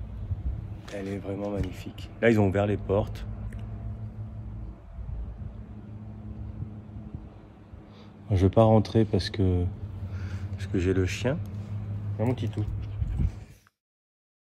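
A young man speaks calmly, close to the microphone.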